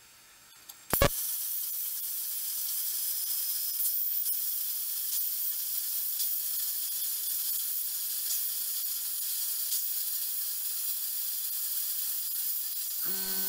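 A plasma cutter hisses steadily while cutting metal.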